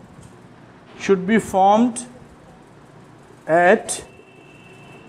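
A man speaks calmly nearby, explaining.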